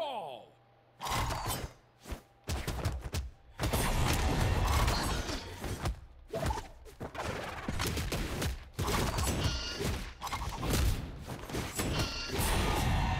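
Fighting game characters clash with rapid hits, whooshes and blasts.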